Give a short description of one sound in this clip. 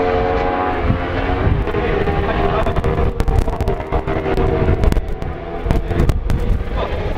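A single motorcycle engine rumbles at low revs as the bike slows down.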